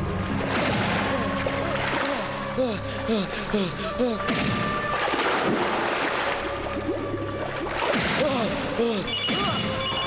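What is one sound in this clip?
Water splashes and churns as a person thrashes.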